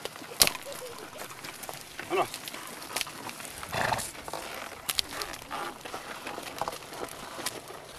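A wooden plough scrapes and drags through the soil.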